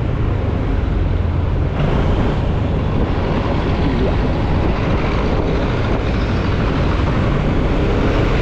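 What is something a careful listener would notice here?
An engine rumbles steadily up close as a vehicle drives along a street.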